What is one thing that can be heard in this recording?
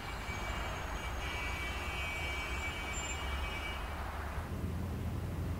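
Car traffic hums and rushes along a city street.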